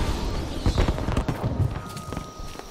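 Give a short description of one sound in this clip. Footsteps crunch on leaves and gravel.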